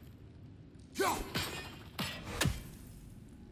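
An axe whooshes and strikes with a clang.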